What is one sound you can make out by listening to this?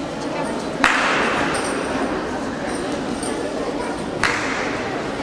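A body lands with a thud on a gym mat.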